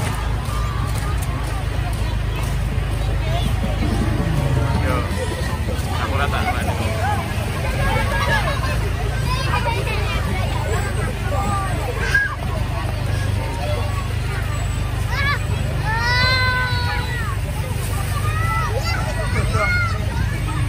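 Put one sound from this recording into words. A crowd of women and young children chatters nearby outdoors.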